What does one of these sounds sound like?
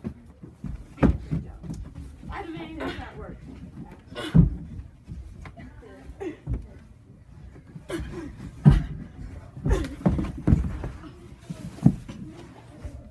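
Bodies thump against the floor and wall during rough play.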